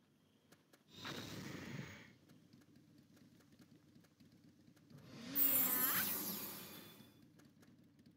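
A magic spell bursts with a whooshing shimmer.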